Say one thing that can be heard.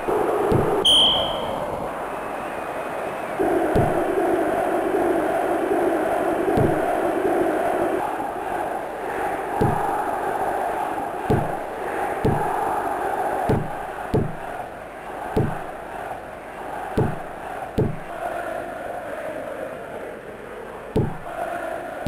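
A ball is kicked with dull thuds again and again.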